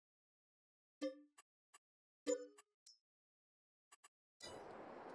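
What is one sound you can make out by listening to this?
Soft interface clicks and chimes sound.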